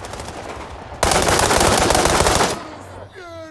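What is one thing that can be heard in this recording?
A rapid burst of gunfire rings out loudly.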